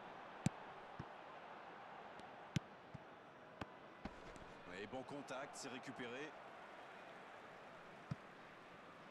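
A football is kicked with sharp thuds now and then.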